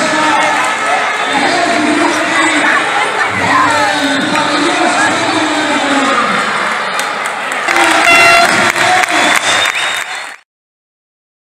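A large crowd cheers and shouts in an echoing indoor hall.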